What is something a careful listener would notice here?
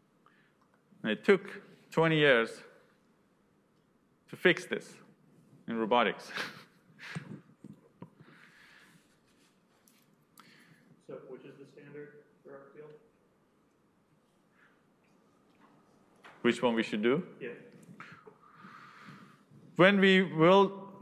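A man lectures calmly into a microphone.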